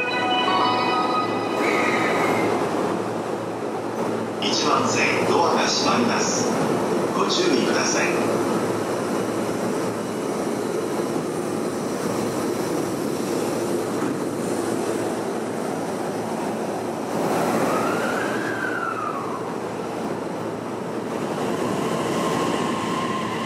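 Footsteps walk along a hard platform.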